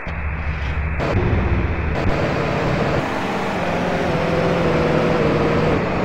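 Music plays from a car radio.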